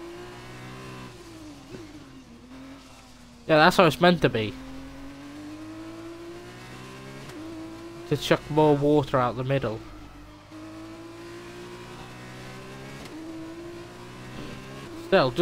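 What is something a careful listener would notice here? A racing car engine whines steadily, rising and falling in pitch as the car speeds up and slows down.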